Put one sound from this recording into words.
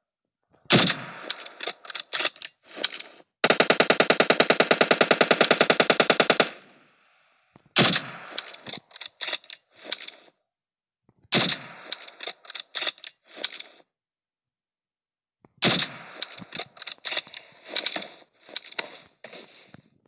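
A rifle bolt clicks and clacks after each shot.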